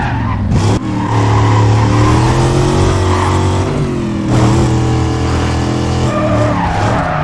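Tyres squeal as a car drifts through a bend.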